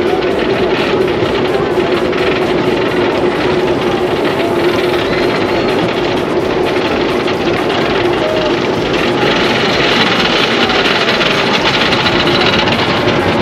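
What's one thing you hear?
A roller coaster train rattles and clacks steadily along its track.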